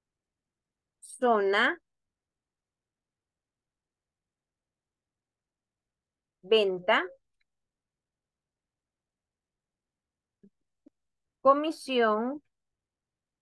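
A woman speaks calmly into a microphone in short phrases.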